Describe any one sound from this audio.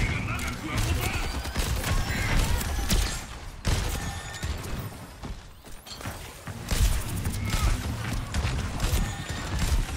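Explosions boom and crackle in a game.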